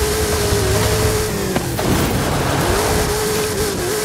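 A car crashes and tumbles with a heavy thud.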